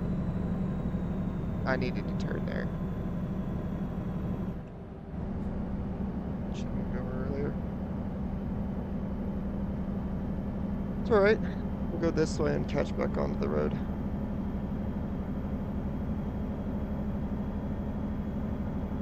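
A truck engine hums steadily.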